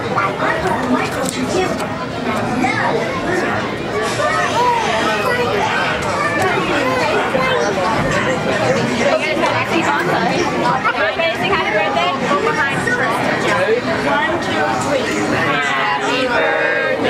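Adults and children chatter and talk over one another nearby.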